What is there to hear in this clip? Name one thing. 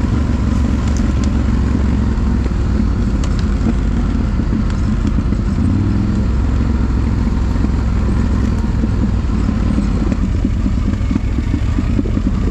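Quad bike tyres crunch over a dirt trail.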